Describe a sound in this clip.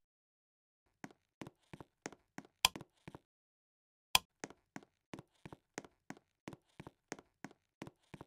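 Footsteps thud steadily at a walking pace on a soft floor.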